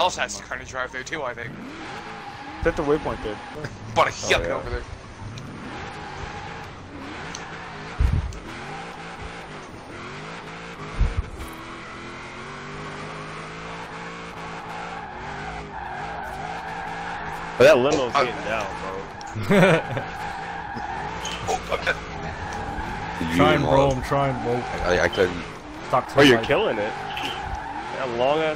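A car engine hums and revs as the car speeds along.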